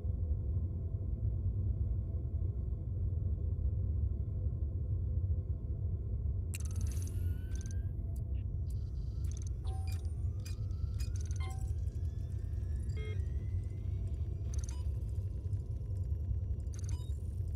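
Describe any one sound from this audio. A spaceship's engines rumble deeply and steadily.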